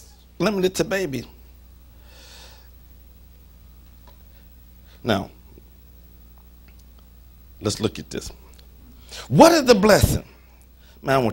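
A middle-aged man speaks slowly and deliberately into a microphone, with long pauses.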